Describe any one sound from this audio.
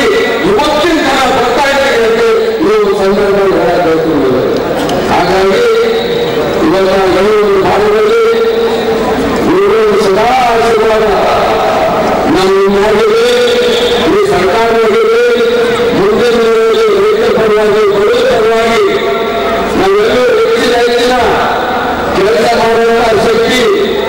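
A middle-aged man gives a speech with animation through a microphone and loudspeakers, in an open, echoing space.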